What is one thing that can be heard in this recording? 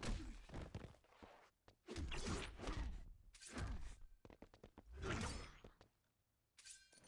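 Heavy punches and kicks thud in a fast fight.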